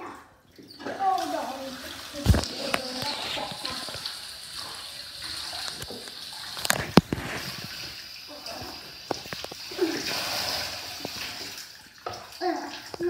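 Water runs from a tap and splashes into a bathtub.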